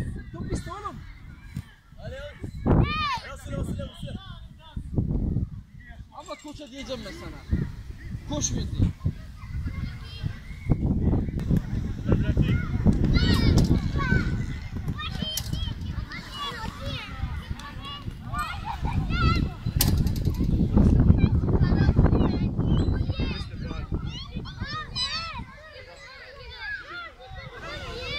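Young children shout and call out excitedly outdoors.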